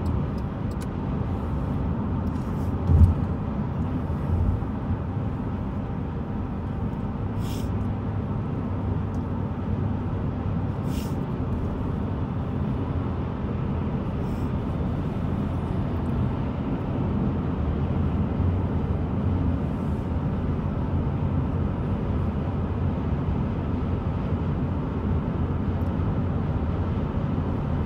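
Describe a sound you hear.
A car drives along a highway, with a low road rumble heard from inside.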